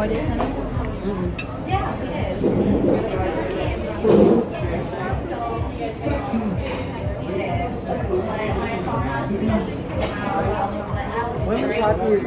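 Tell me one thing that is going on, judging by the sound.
A second woman talks back close by.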